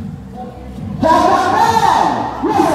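A crowd cheers and shouts outdoors.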